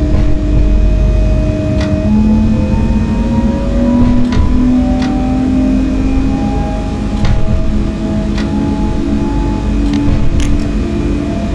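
A train rumbles low along the track.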